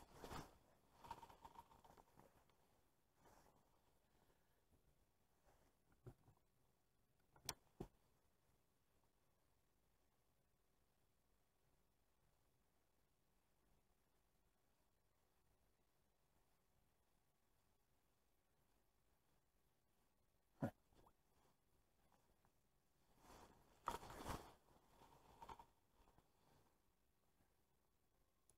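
Jacket fabric rustles close by.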